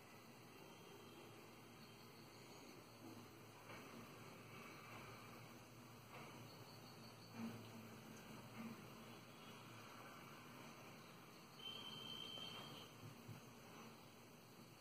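A crochet hook softly taps and rustles through yarn.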